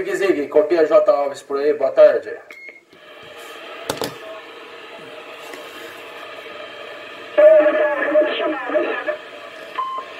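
A man's voice crackles through a radio loudspeaker.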